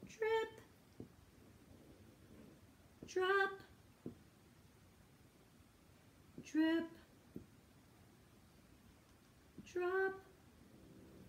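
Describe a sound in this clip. A woman sings short single notes, one at a time, with pauses between them.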